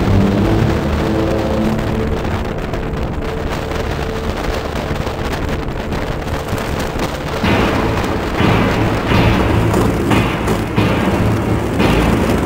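Wind rushes loudly past at speed.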